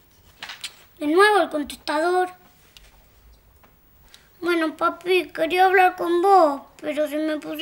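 A young girl speaks clearly into a phone, close by.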